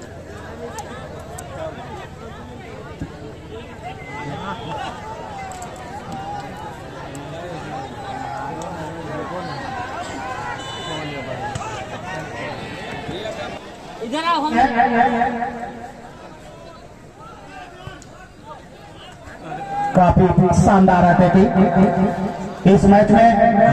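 A large outdoor crowd chatters and murmurs steadily.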